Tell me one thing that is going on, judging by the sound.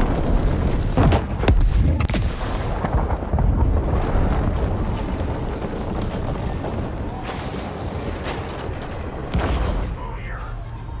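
An explosion booms, followed by a deep rumble.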